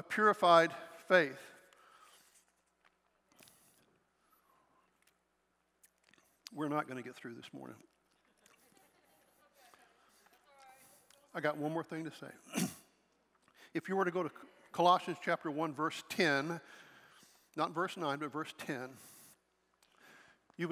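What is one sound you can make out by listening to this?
An older man speaks calmly through a microphone, with pauses, in a large echoing hall.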